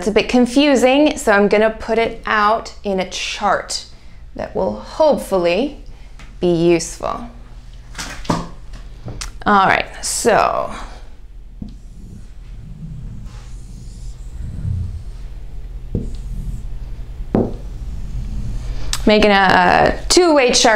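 A young woman speaks clearly and calmly, as if teaching.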